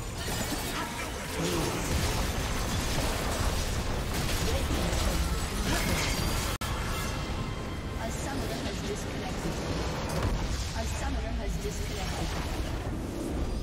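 Game spell effects and clashes crackle and boom rapidly.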